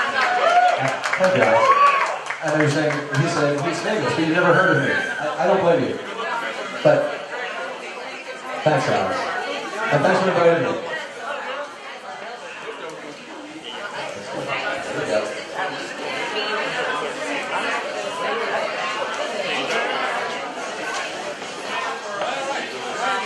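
A middle-aged man talks with animation through a microphone over loudspeakers.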